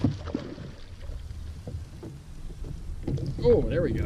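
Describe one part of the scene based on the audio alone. A fish splashes on the water's surface.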